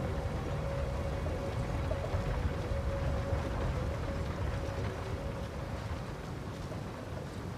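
Heavy armored footsteps run over soft ground.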